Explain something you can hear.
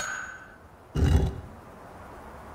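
A low deep thud sounds as a stone is placed.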